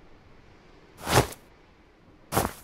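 A book thumps softly as it is picked up.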